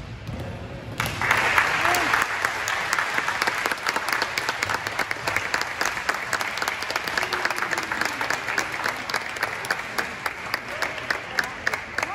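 A crowd of young players and spectators cheers loudly in a large echoing hall.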